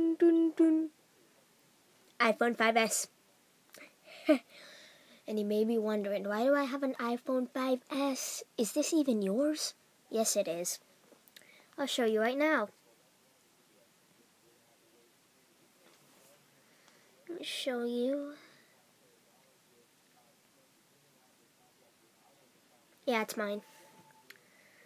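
A boy talks with animation close to a microphone, in short bursts with pauses.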